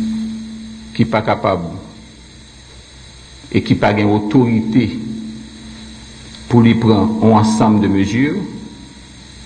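A man speaks slowly and deliberately into a microphone, in short phrases with pauses.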